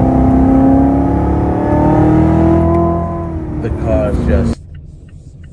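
A sports car engine roars loudly and revs up.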